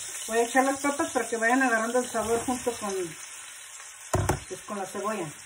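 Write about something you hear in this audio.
Pieces of bread tumble into a sizzling pan.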